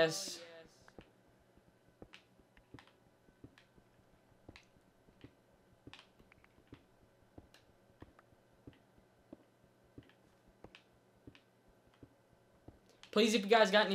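A pickaxe taps rhythmically at stone blocks.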